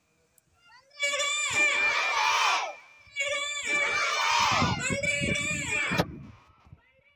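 A group of children chant together loudly outdoors.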